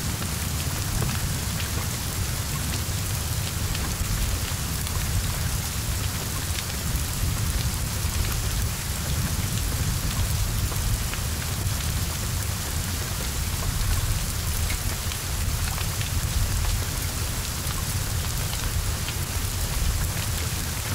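Flames roar and crackle as a car burns.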